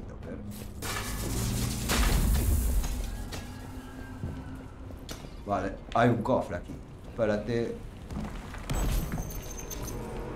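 Game sound effects crackle and boom.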